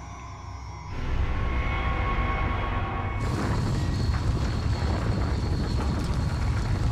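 A heavy stone door rumbles and grinds open.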